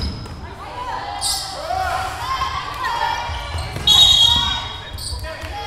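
Young women shout and call out to each other.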